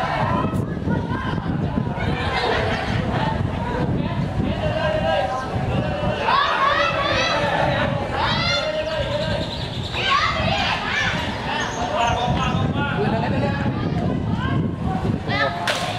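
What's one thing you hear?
Young men shout and call out to each other across an outdoor pitch.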